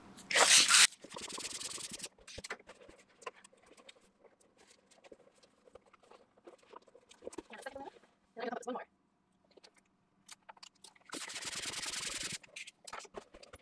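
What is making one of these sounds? A hand pump pushes air into a balloon with a rushing hiss.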